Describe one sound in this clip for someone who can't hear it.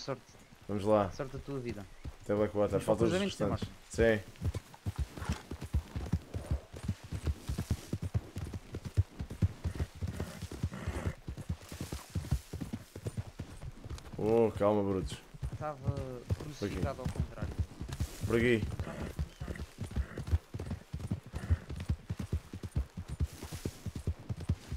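Horse hooves thud rapidly at a gallop.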